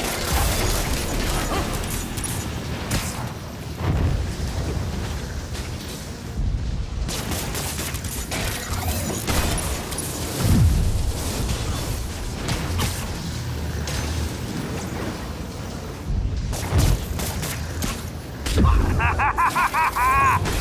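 Electricity crackles and buzzes loudly.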